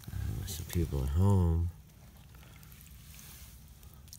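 Water splashes as a cloth scoops from a shallow puddle.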